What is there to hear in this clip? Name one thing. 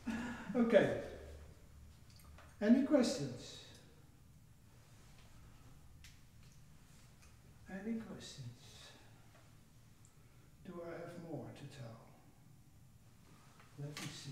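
An elderly man speaks calmly in short bursts.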